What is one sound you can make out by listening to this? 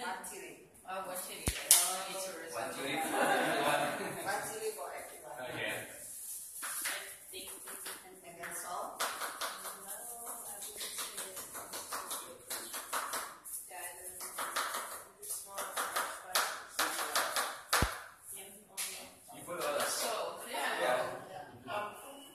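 Several young men and women chat casually nearby in a small room.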